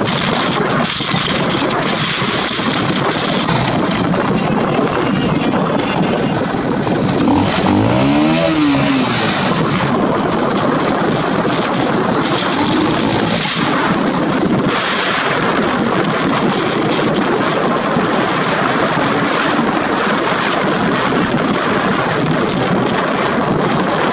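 Wind rushes loudly past a moving vehicle outdoors.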